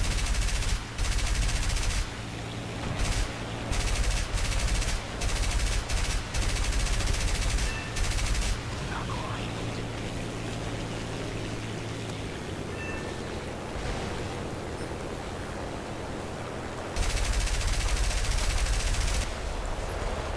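Machine guns fire in loud, rapid bursts.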